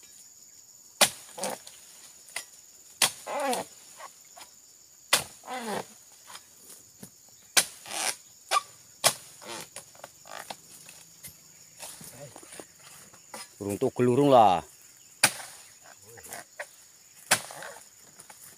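A blade on a long pole chops sharply into a palm trunk, again and again.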